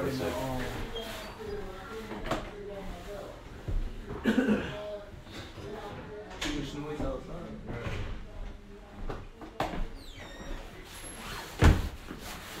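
Footsteps pass close by.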